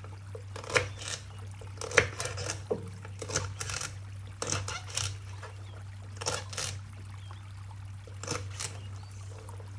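A knife chops through celery stalks on a wooden board with sharp knocks.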